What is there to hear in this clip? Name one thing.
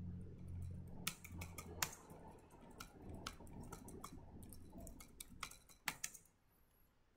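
Keys clack on a computer keyboard.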